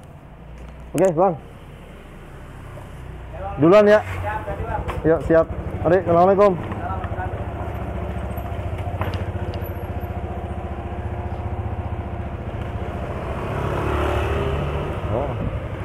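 A motorcycle engine hums steadily while riding.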